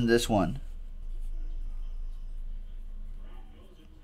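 A marker squeaks as it writes on a card.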